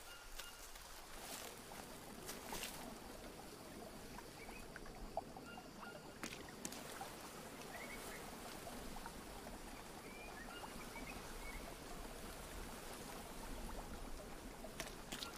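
Water flows gently over rocks.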